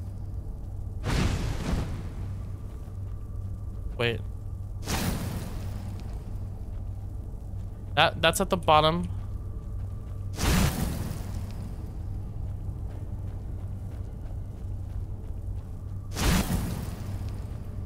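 Magic beams whoosh and hum.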